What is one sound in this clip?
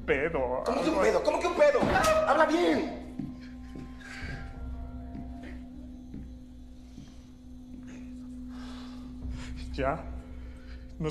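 A young man sobs and speaks in distress close by.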